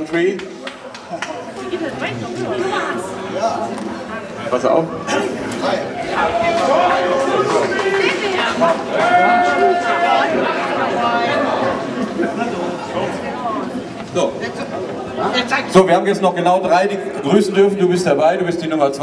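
A crowd laughs and chatters nearby.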